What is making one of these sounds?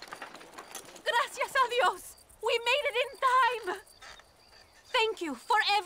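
A young woman speaks warmly and with relief, close by.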